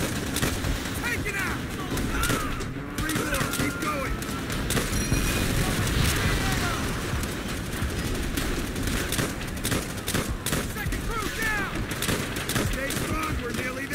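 Anti-aircraft guns pound steadily.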